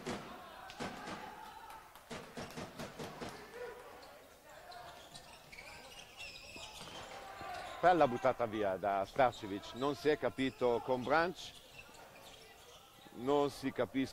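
A ball bounces on a hard floor.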